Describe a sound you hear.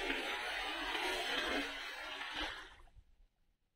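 A cast net splashes down onto water.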